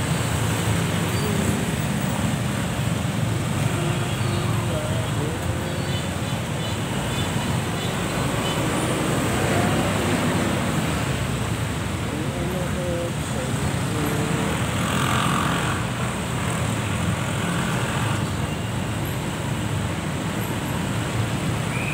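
Traffic hums and rumbles all around on a wet road.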